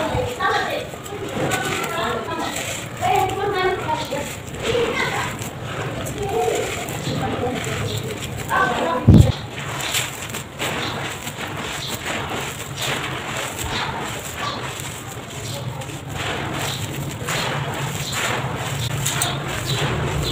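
Dry soil crumbles and pours from hands in soft, gritty trickles.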